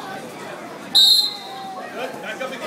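A referee blows a short, sharp whistle blast.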